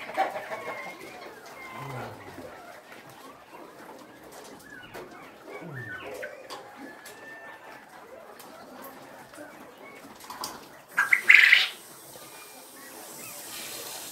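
Many caged birds chirp and squawk throughout.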